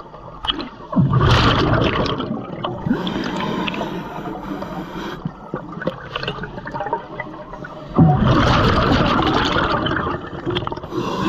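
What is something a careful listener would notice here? Air bubbles gurgle and rush loudly underwater in bursts.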